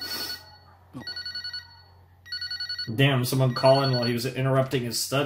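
A phone rings with an electronic tone.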